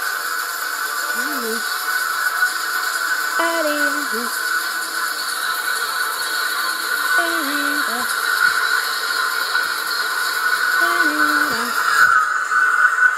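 A short sung tune plays faintly from a laptop speaker.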